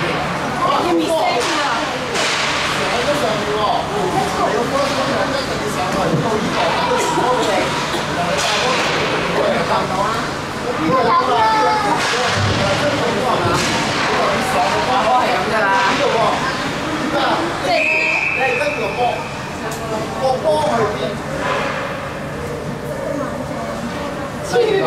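Skates scrape across ice.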